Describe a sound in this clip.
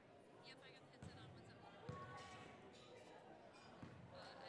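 A basketball bounces on a hard court with a thudding echo in a large gym.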